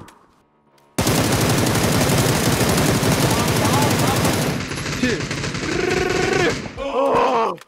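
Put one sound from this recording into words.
Automatic gunfire rattles loudly.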